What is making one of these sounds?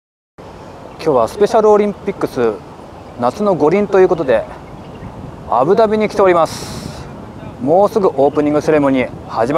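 A young man talks calmly and close to a microphone, outdoors.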